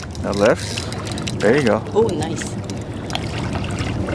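A seal splashes as it surfaces in calm water.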